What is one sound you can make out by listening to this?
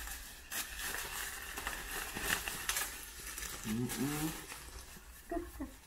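Plastic wrap crinkles and rustles in someone's hands.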